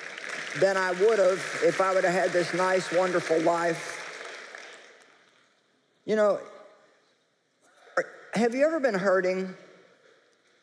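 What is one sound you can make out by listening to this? A middle-aged woman speaks with animation into a microphone, heard over loudspeakers in a large room.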